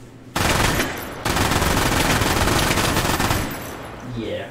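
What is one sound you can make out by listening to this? A gun fires a rapid burst of loud shots.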